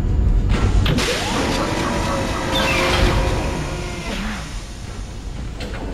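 A large metal mechanism whirs and clanks as it moves into place.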